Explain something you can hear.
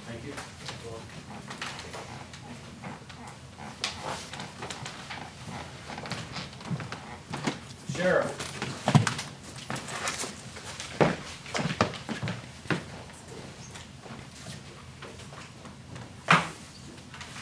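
Elderly men talk quietly in a room with a slight echo.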